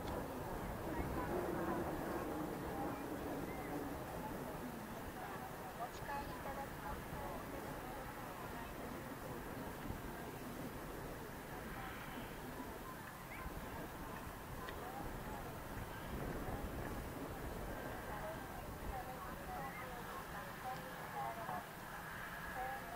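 A propeller plane's engines drone steadily as it taxis past at a distance.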